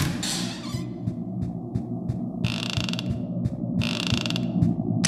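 Light footsteps patter steadily across a wooden floor.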